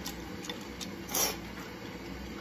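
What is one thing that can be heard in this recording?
A young woman blows on hot noodles.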